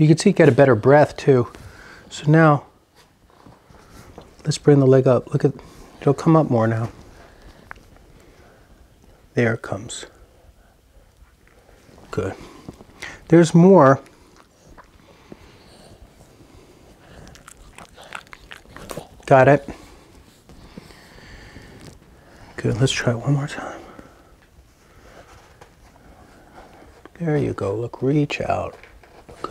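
A middle-aged man speaks calmly nearby, in short bursts with pauses.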